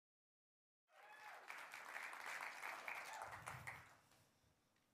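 An audience applauds in a hall.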